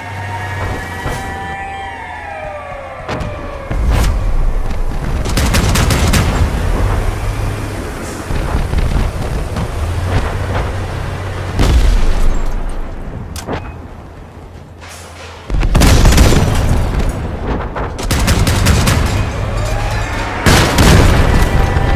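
Guns fire in sharp bursts.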